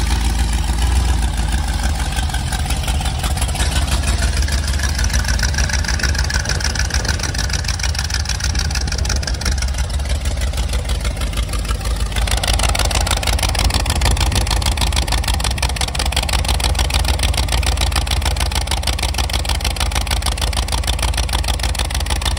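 A large engine idles with a loud, steady, throaty rumble close by.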